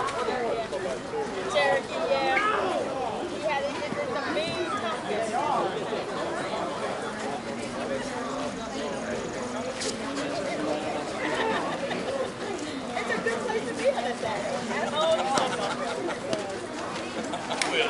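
Several players call out and chatter across an open field.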